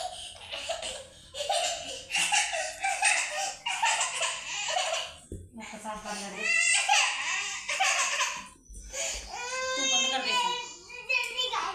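A young woman talks playfully to a small child.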